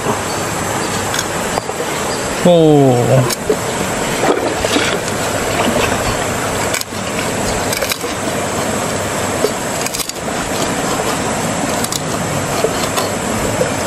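A cleaver chops through meat onto a wooden board.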